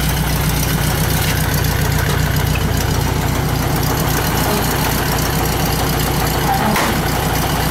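A small engine idles steadily with a low, rapid chugging rumble close by.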